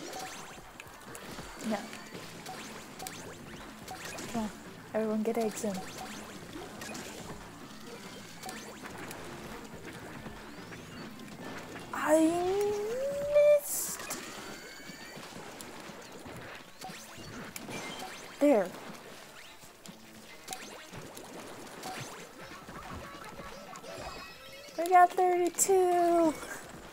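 Paint sprays and splatters in wet bursts.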